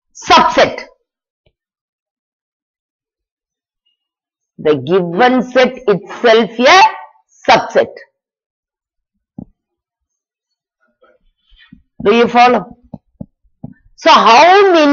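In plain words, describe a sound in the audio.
A woman explains calmly in short phrases, close to a microphone.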